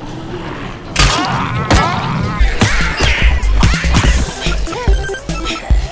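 A metal pipe strikes a zombie with heavy blows.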